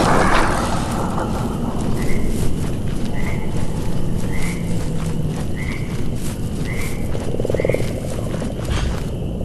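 Footsteps tread softly through grass.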